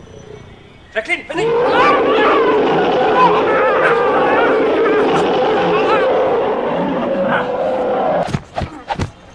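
A dog snarls and growls fiercely.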